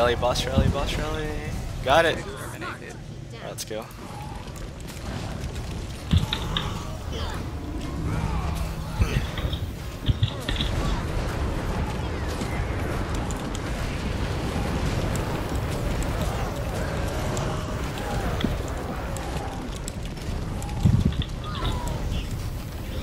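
Fiery blasts and magic impacts crackle and boom during a fight.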